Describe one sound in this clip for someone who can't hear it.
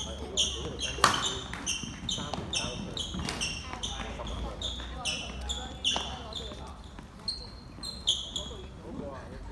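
Sports shoes squeak sharply and repeatedly on a wooden court floor.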